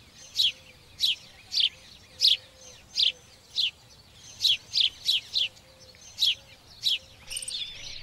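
A sparrow chirps in short, sharp repeated calls.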